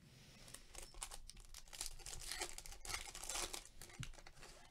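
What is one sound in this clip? Foil card wrappers crinkle and rustle.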